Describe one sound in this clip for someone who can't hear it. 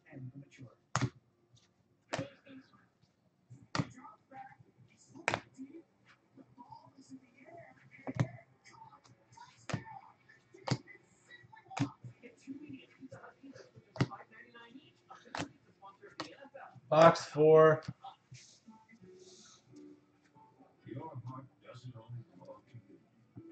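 Trading cards snap and flick as they are shuffled by hand.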